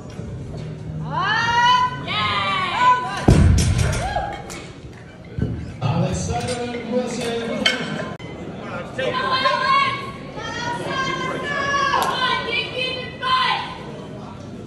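Men shout and cheer loudly in an echoing hall.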